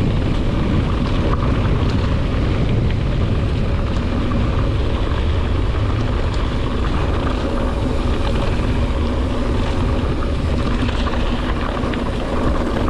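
Bicycle tyres crunch and rattle over loose gravel.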